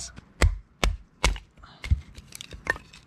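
A wooden baton knocks sharply on a knife, splitting wood.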